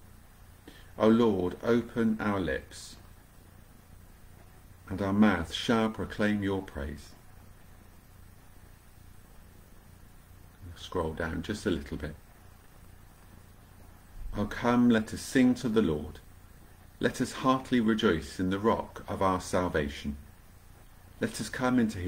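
A middle-aged man speaks calmly into a nearby microphone, in short bursts with pauses.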